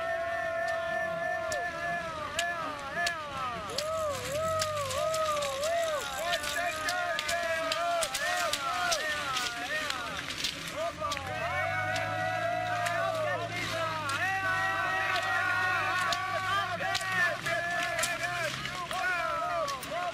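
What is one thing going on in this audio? Skis scrape and swish over snow as skiers pass close by.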